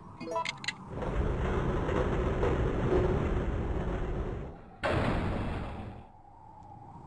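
A heavy mechanism rumbles and grinds loudly.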